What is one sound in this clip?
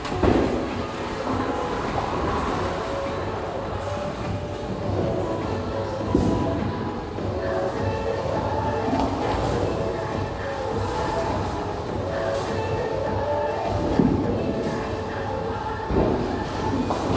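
Bowling pins clatter as they are struck.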